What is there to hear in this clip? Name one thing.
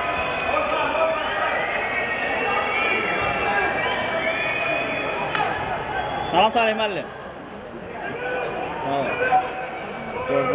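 Men shout and call to each other across an open outdoor pitch.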